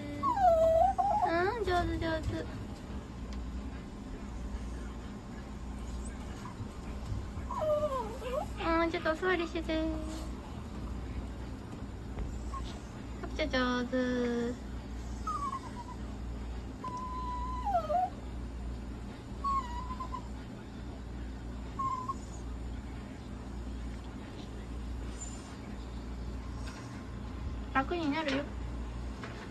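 A small dog whines in high, wavering cries.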